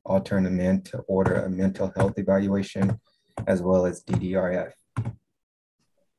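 A man speaks at length through an online call.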